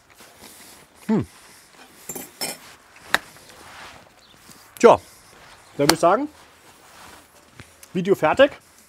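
A man speaks in short bursts, close by.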